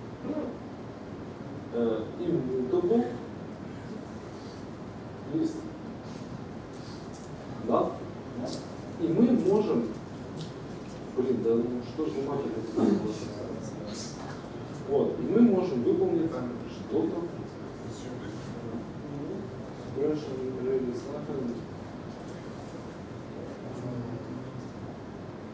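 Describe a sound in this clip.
A man speaks calmly in short bursts.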